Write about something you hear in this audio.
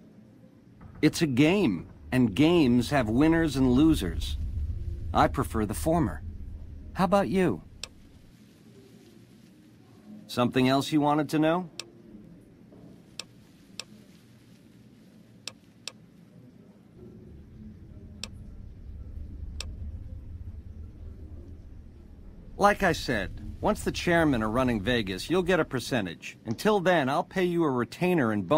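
A man speaks calmly and smoothly, close to the microphone.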